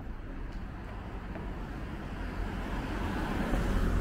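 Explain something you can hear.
A car engine hums and grows louder as a taxi drives close by.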